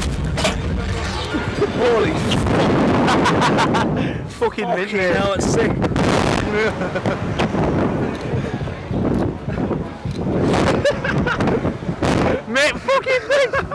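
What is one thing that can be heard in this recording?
Two young men scream and laugh up close.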